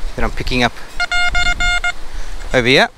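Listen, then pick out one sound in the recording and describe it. A metal detector beeps in quick, even pulses.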